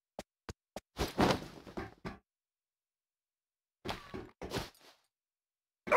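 Gear clanks and thumps as someone climbs onto a metal container.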